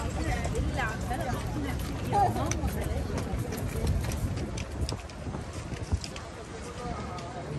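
People chatter nearby in a crowd.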